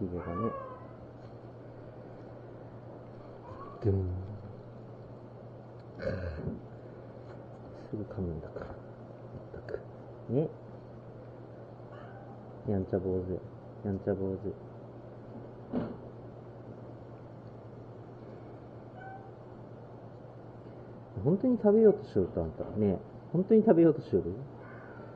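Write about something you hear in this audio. Cats meow close by, in short bursts.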